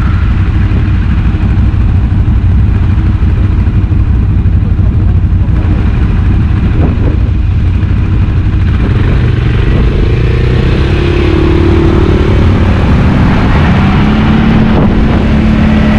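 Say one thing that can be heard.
A quad bike engine rumbles loudly nearby.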